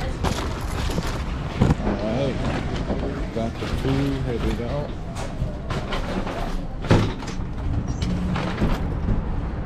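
A young man talks casually and close to a microphone.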